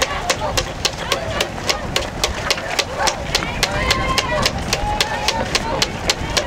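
Many runners' feet patter on the road.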